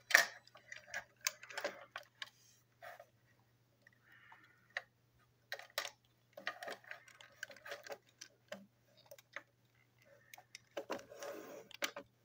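Hands click and clatter plastic toy train parts together.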